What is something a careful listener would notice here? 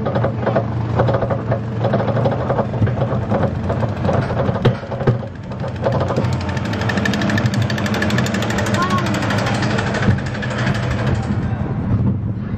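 A roller coaster car clanks steadily up a chain lift.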